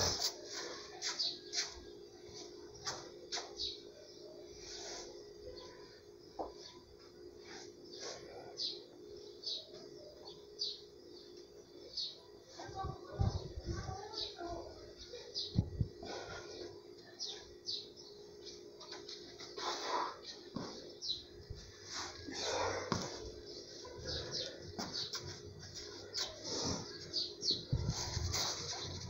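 Footsteps scuff and tap on a hard floor.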